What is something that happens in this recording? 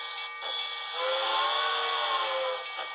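A model steam locomotive's whistle blows a long, wavering note.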